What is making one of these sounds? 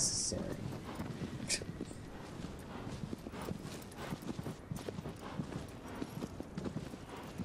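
A horse's hooves thud steadily as the horse gallops.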